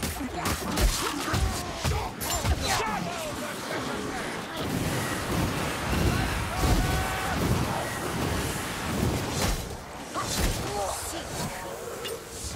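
Creatures screech and growl.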